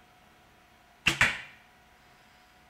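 A bowstring snaps as an arrow is released with a sharp thwack.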